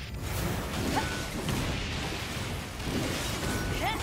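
Explosions burst loudly.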